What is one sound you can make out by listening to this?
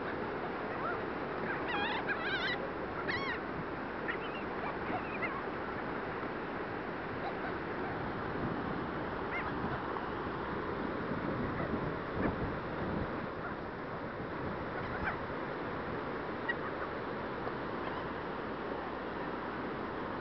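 Seagulls flap their wings.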